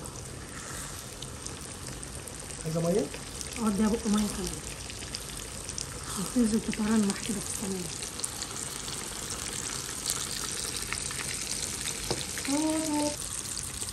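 A spoon scrapes and stirs through a thick sauce in a metal pan.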